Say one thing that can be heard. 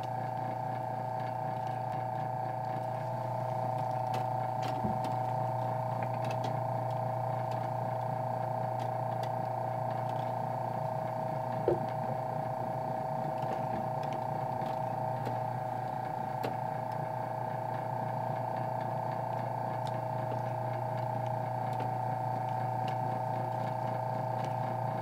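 A clockwork mechanism whirs steadily.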